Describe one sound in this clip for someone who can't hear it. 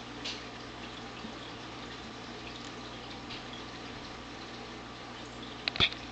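A cat's paws tap and patter on a glass surface.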